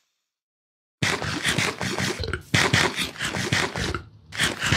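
Loud chewing and munching of food.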